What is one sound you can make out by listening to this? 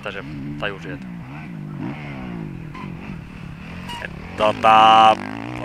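A motocross bike engine revs and roars close by, rising and falling in pitch.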